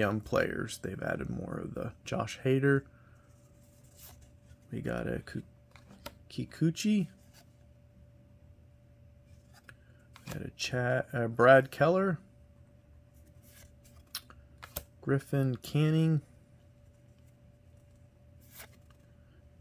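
Trading cards rustle and slide against each other in a man's hands.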